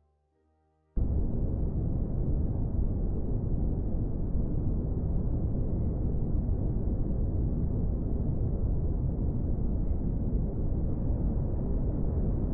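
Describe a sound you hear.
A rocket engine roars with a deep, steady rumble.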